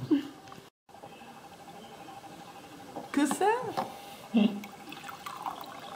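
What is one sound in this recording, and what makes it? Juice pours into a glass.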